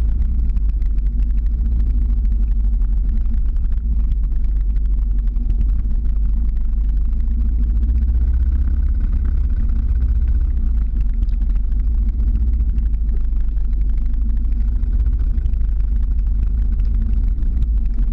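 Skateboard wheels rumble steadily over rough asphalt.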